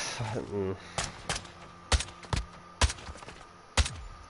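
A rifle fires loud, sharp shots in quick bursts.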